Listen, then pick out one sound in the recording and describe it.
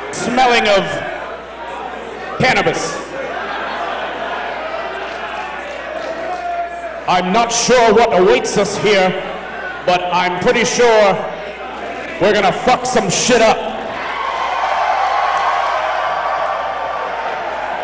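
A crowd murmurs and cheers.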